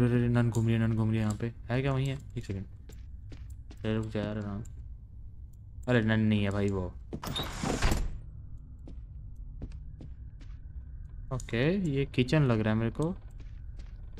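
A young man talks into a close microphone in bursts, with animation.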